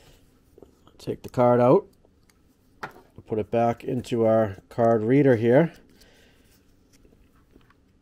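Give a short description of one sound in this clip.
A small plastic adapter clicks and rattles in someone's hands.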